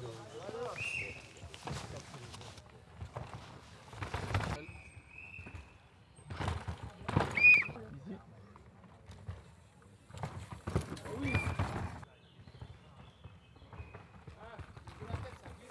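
Mountain bike tyres skid and crunch over dirt and rocks.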